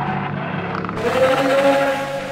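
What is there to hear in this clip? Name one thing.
A creature lets out a loud, rasping shriek.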